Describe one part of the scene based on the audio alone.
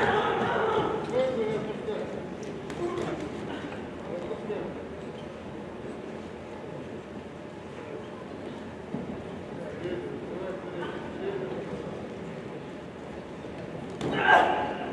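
Boxers' shoes shuffle and squeak on a ring canvas.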